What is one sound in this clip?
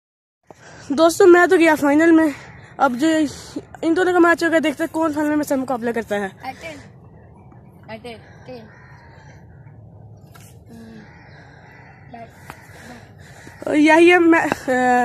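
A boy speaks close by.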